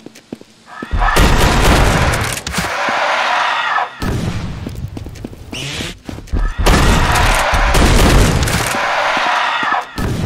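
Loud fight sounds crash and roar.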